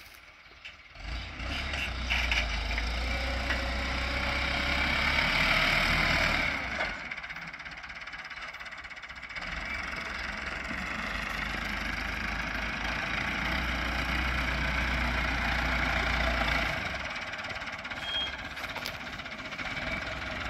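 A tractor engine rumbles and labours nearby.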